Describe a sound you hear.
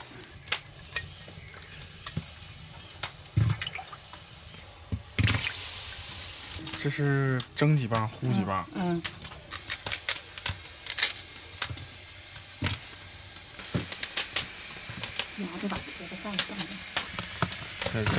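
A knife chops at corn cobs with sharp knocks.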